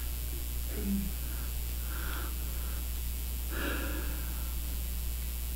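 An elderly man speaks calmly through a microphone in a large room, with pauses between phrases.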